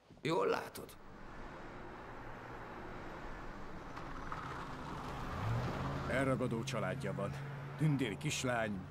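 A car engine rumbles as a car drives past.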